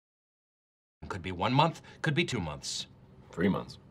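A man speaks quickly and with animation.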